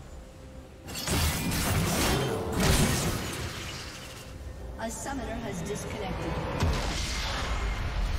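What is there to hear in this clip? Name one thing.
Magical spell effects crash and crackle in a fast game fight.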